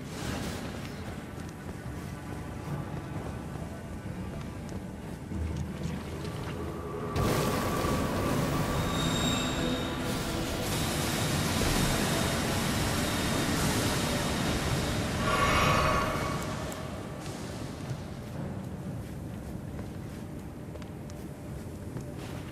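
Footsteps crunch on rocky ground in an echoing cave.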